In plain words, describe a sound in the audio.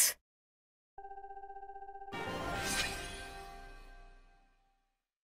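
A short, bright victory fanfare chimes and fades.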